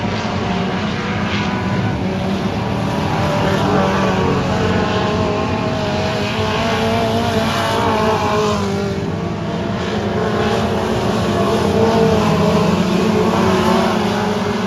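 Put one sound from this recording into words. Race car engines rev up and down as they pass close by.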